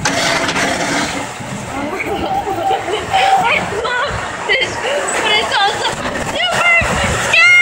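A young boy laughs and shrieks excitedly.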